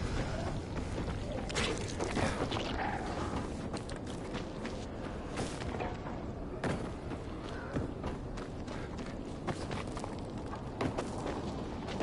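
Footsteps run and crunch over rubble.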